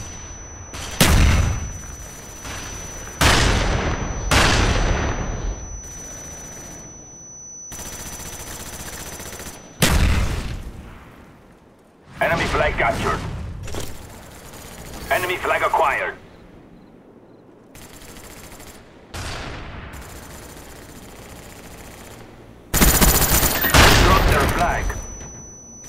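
Loud gunshots bang and echo away.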